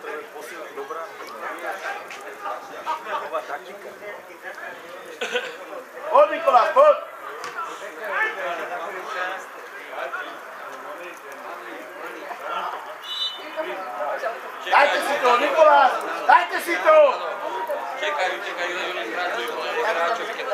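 Men talk quietly close by.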